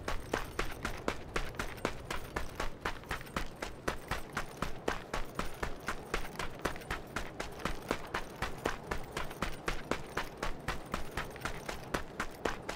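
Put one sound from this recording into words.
Footsteps thud quickly on a dirt path.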